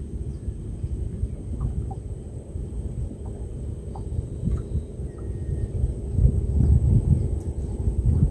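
Water laps against the side of a small wooden boat.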